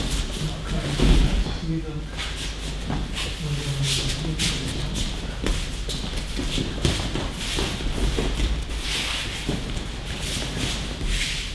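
Bodies thump onto mats as people are thrown in a large echoing hall.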